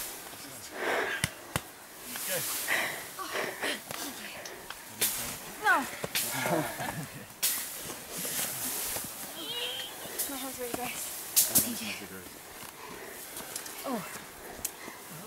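Footsteps crunch and rustle through leaves and brush.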